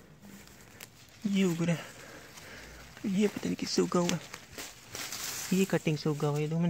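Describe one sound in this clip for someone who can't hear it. Leaves rustle as a hand pushes through them.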